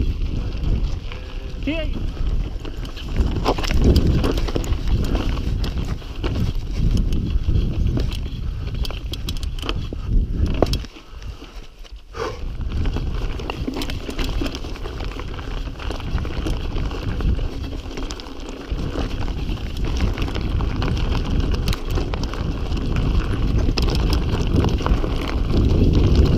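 A bicycle chain and frame clatter over bumps.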